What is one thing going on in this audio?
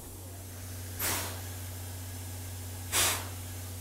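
Steam hisses in sharp bursts from a standing steam locomotive.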